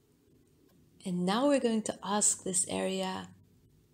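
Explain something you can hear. A woman speaks calmly and softly nearby.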